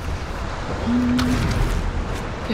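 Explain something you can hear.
An arrow is shot from a bow with a sharp twang.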